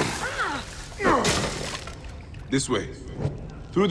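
Wood and stone crash as a wall is broken through.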